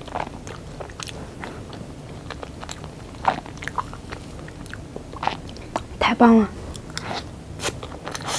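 A young woman chews and smacks her lips close to a microphone.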